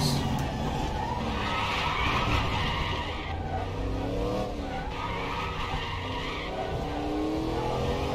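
Tyres screech as a racing car brakes hard into a corner.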